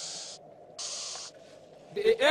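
A snake hisses sharply in short bursts.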